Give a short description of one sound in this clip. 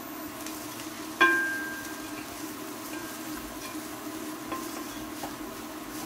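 A wooden spoon stirs food, scraping and knocking against a bowl.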